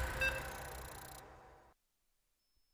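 Game music and interface sounds play briefly, then stop.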